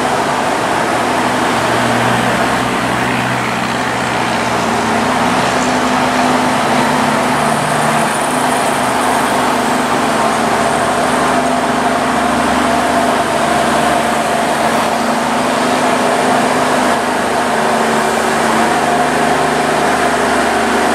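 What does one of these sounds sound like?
Train wheels rumble and squeal on the rails.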